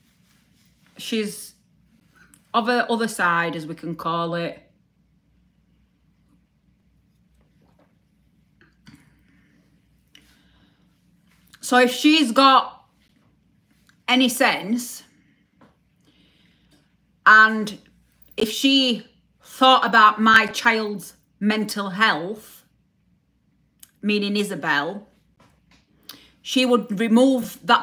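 A woman speaks close up, calmly, with pauses.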